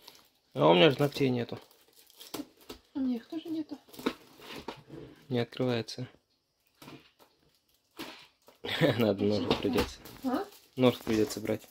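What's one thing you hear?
A cardboard box rustles as it is opened.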